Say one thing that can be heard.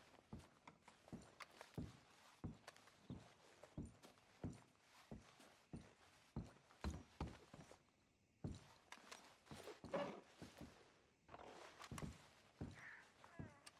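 Footsteps thud slowly on creaky wooden floorboards.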